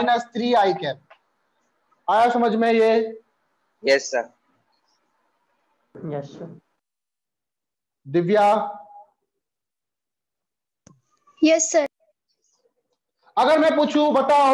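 A man speaks in short bursts, explaining calmly, close by.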